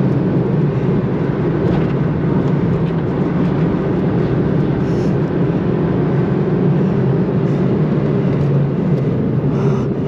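Tyres roar on the road surface.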